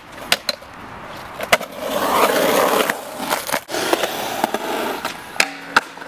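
Skateboard wheels roll and clatter on concrete.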